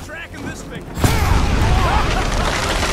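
A loud explosion bursts and rumbles on.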